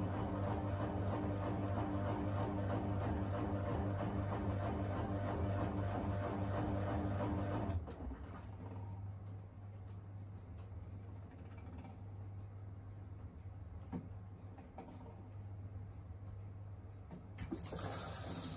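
A washing machine drum turns with a low steady hum.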